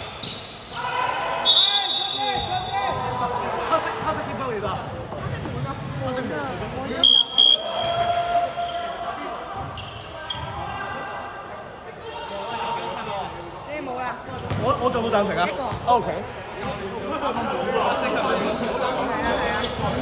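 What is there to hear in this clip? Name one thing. Young men talk and call out in a large echoing hall.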